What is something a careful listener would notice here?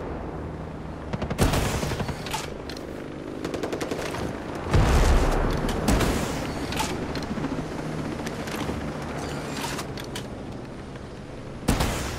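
A small helicopter's rotor thumps overhead.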